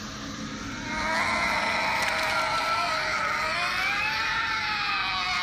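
A creature gives wavering, eerie wails.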